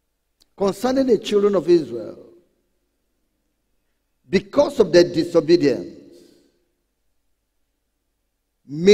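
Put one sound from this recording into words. A man preaches loudly and with animation through a microphone, in short bursts with pauses.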